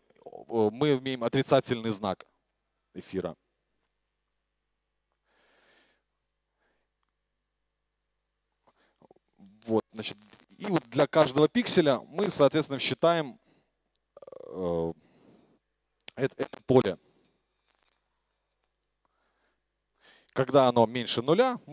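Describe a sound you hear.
A man lectures calmly through a microphone, speaking in bursts with pauses.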